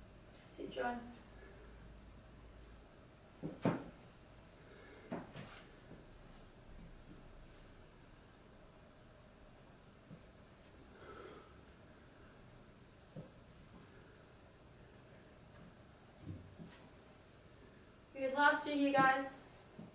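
Feet thud softly on the floor.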